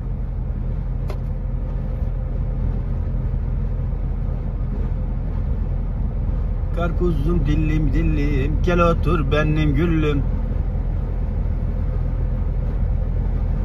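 A vehicle's engine rumbles low and steady as it drives along.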